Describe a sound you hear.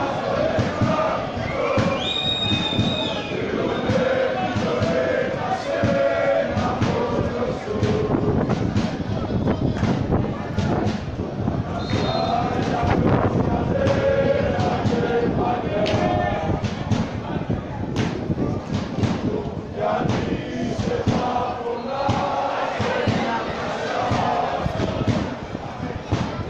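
A crowd of men chatter and shout close by in an open-air stadium.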